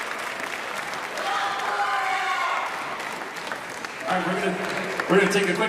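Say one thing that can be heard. An audience applauds and cheers in a large echoing hall.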